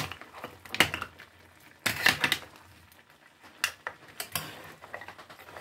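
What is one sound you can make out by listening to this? A metal spoon scrapes and clinks against a frying pan.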